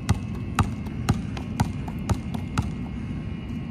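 A basketball bounces in a steady rhythm on a hard outdoor court.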